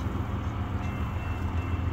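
A railway crossing bell starts ringing.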